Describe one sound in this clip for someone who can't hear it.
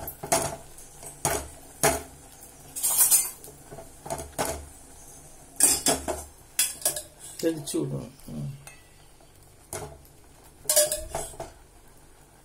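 A wooden spatula knocks against a steel pot.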